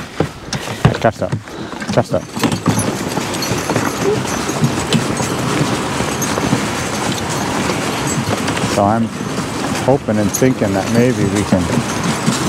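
Sled runners hiss and scrape over snow.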